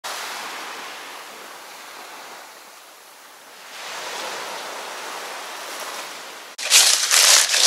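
Gentle waves wash onto a sandy shore.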